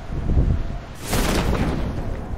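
A parachute snaps open with a loud whoosh.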